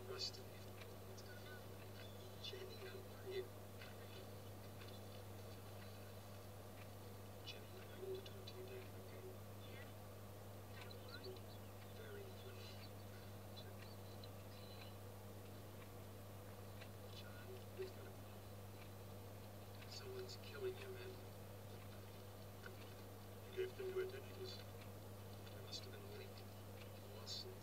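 A man speaks calmly, heard faintly through a television speaker.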